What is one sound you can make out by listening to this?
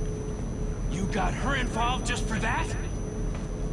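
A young man speaks in a low, tense voice.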